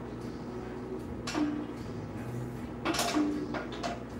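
A press machine clanks as it is handled.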